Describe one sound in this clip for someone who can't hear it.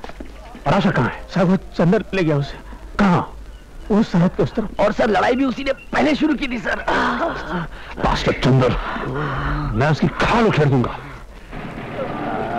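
A man speaks sharply and forcefully up close.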